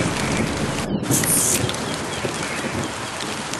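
A creature screeches as it is hit.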